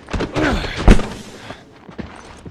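A struggle ends with a heavy thump.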